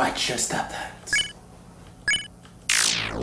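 A video game menu blips as a choice is made.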